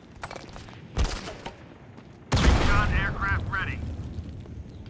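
Gunshots and explosions bang loudly in a video game.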